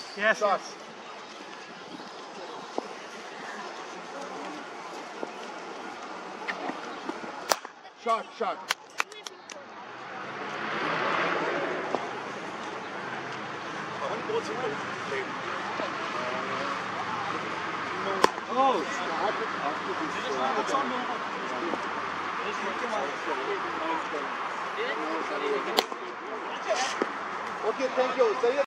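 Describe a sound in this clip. Men talk and call out nearby, outdoors.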